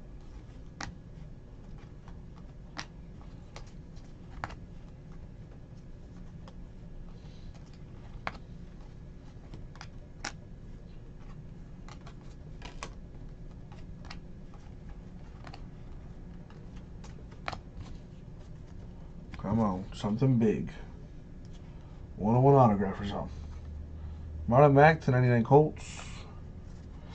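Trading cards slide and flick against each other with soft, light clicks.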